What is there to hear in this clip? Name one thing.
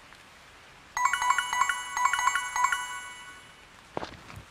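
A bright tinkling chime rings out briefly.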